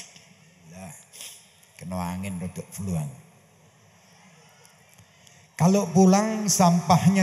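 A man speaks through a microphone over loudspeakers, in a slow chanting voice.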